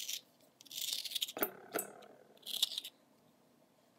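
A peeler scrapes the skin off an apple.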